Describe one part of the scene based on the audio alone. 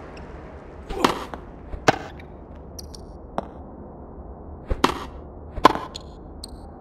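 A tennis ball is struck back and forth with sharp pops.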